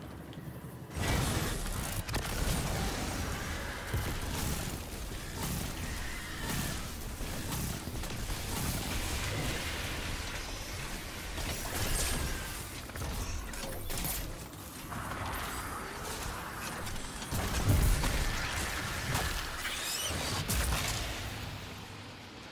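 Gunfire and explosions from a video game blast rapidly.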